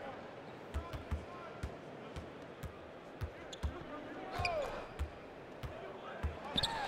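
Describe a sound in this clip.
A basketball bounces on a hardwood floor in a steady dribble.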